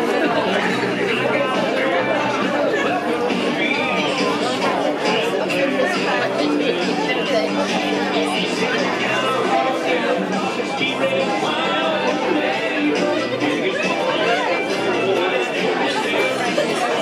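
Feet shuffle and step on a wooden floor.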